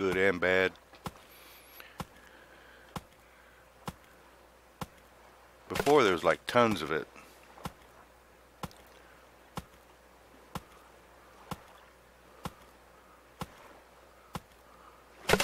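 A stone axe chops into a wooden log with steady, regular knocks.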